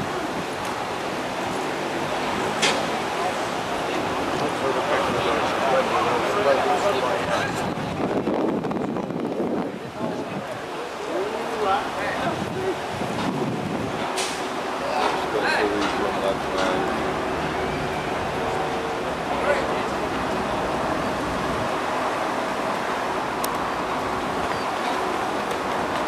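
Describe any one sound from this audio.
Several men chat casually nearby.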